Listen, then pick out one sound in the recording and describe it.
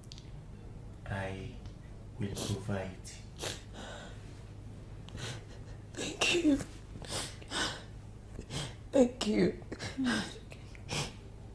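A young woman speaks softly and comfortingly close by.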